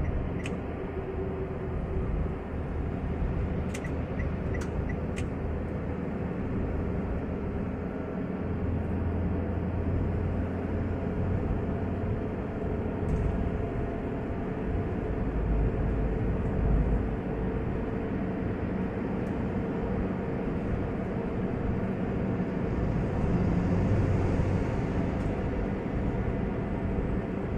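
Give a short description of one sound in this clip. A car's engine hums steadily, heard from inside the car.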